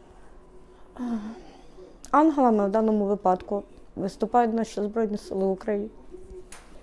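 A young woman speaks tearfully and close up, through a clip-on microphone.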